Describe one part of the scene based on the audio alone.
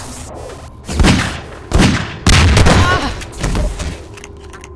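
Loud gunshots fire in quick bursts.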